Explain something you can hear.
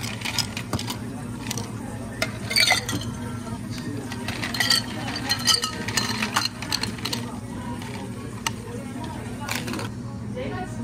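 Ice cubes clink and rattle as they drop into glasses.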